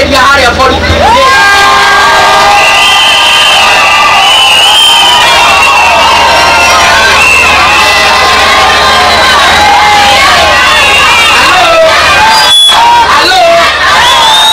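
Women ululate in high, wavering cries.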